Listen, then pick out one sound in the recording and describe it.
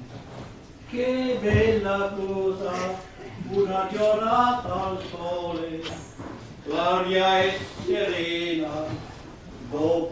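A man sings out loudly on a stage.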